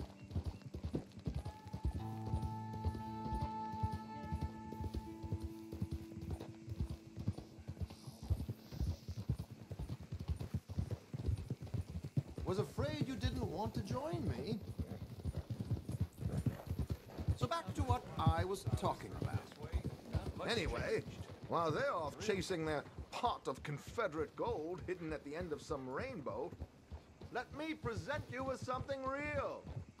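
Horse hooves thud steadily on a dirt track.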